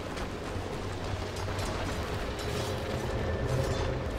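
Fantasy battle sound effects clash and whoosh.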